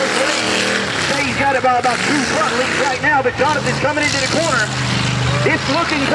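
A second mud bog truck's engine revs hard, far off.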